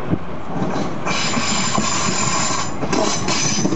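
Train brakes squeal with a high, steady whine.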